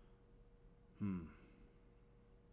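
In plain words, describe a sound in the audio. A man lets out a short, loud exclamation close to a microphone.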